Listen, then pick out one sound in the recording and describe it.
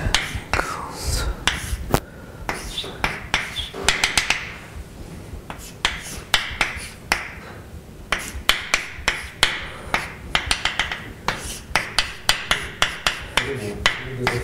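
Chalk taps and scrapes on a blackboard in quick strokes.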